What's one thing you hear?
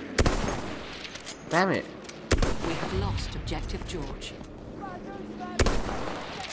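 Loud gunshots boom, each followed by a rolling echo.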